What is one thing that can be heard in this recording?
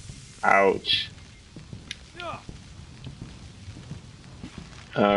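A man talks loudly and with animation into a close microphone.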